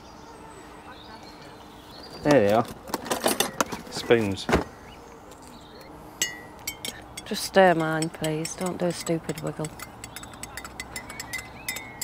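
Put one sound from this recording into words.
Plastic packets rustle and items clink as they are sorted.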